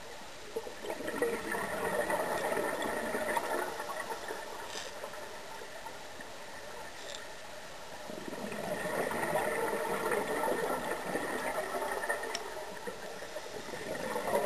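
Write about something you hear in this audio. Exhaled bubbles from a scuba regulator gurgle and rumble underwater.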